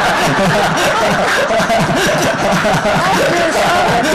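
An elderly woman laughs nearby.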